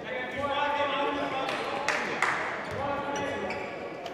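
A ball is kicked on a hard indoor court.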